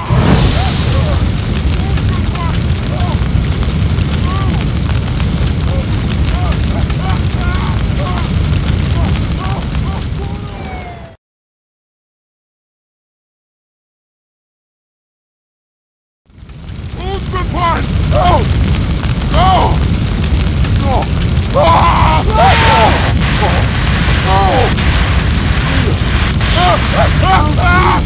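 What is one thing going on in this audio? A man shouts in panic.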